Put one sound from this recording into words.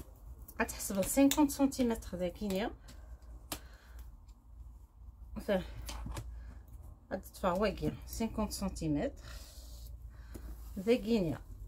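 A woman speaks calmly and explains, close by.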